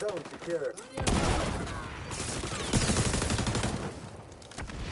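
Gunfire bursts rapidly.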